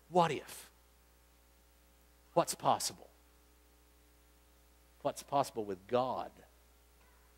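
A man speaks in short bursts into a microphone, with pauses.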